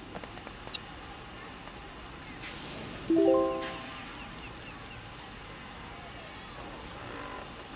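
Steam hisses softly beneath a rocket.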